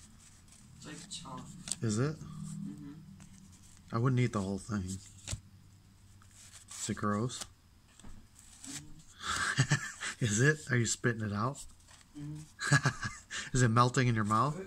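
Trading cards rustle and slide as they are flipped through by hand.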